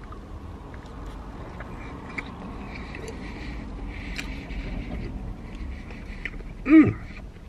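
A man chews food with his mouth full.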